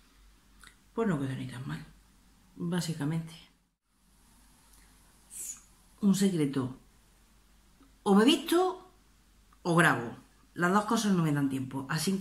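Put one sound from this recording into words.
A woman speaks close up in short, animated bursts.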